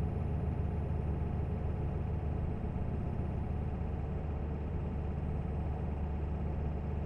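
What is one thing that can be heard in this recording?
A truck engine hums steadily at cruising speed.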